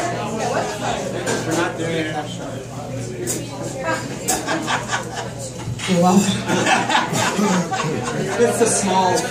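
A guitar strums.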